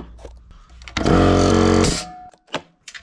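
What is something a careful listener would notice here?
An air compressor hisses loudly.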